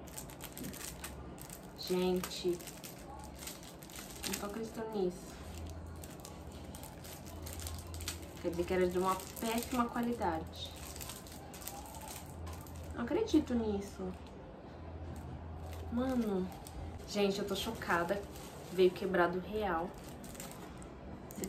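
A paper package rustles in hands.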